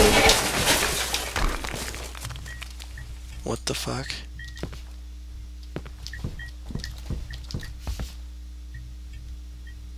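Footsteps thud softly indoors.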